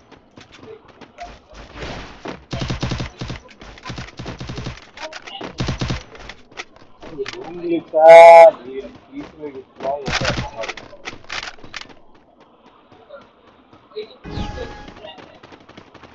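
Footsteps patter quickly on hard ground as a game character runs.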